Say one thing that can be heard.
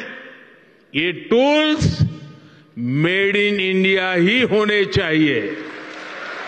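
An elderly man speaks forcefully into a microphone in a large hall.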